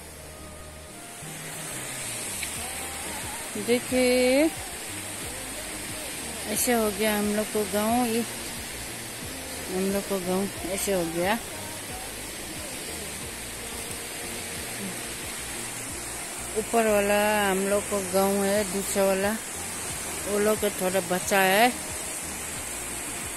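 A swollen river rushes steadily.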